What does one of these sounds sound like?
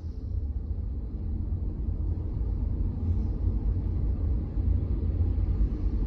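A car rumbles along a wet road, heard from inside the cabin.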